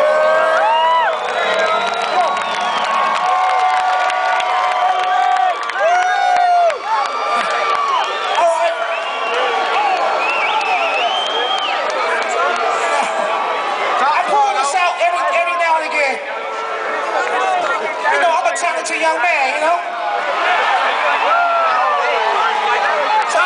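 A man sings into a microphone over the loudspeakers.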